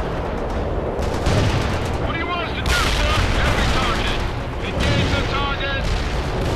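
Explosions boom and crackle in bursts.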